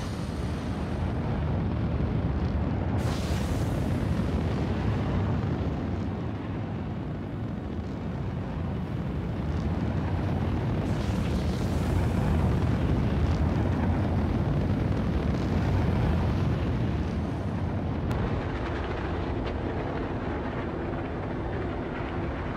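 A spacecraft's engines roar steadily.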